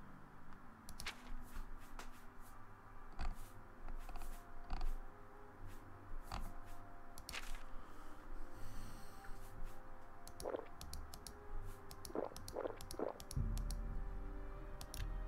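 Short clicks sound as menu items are selected.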